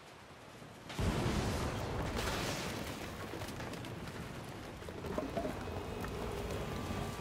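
A storm roars with rushing wind and water.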